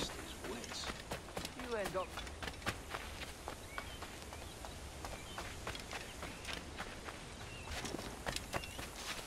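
Footsteps run quickly over dirt and stone steps.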